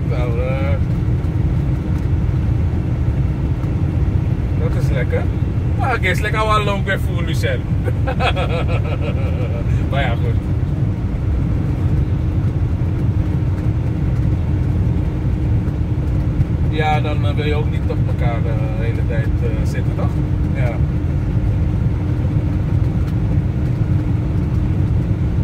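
A car engine hums steadily with a low road rumble from inside the car.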